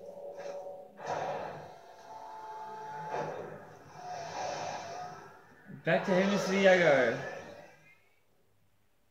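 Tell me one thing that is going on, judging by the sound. Video game sound effects whoosh and clatter from a television speaker.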